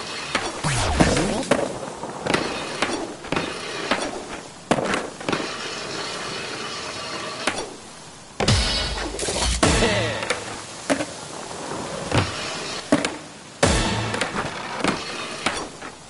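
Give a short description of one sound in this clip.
A skateboard grinds and scrapes along a ledge.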